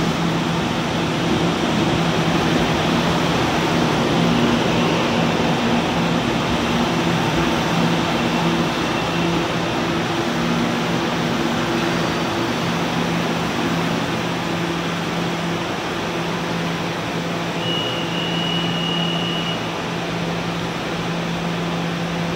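A train's engine hums steadily while idling at a platform.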